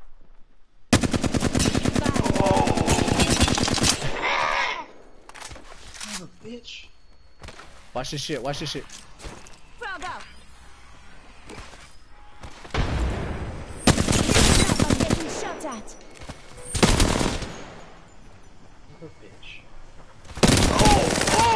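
A rapid-fire gun fires long, loud bursts.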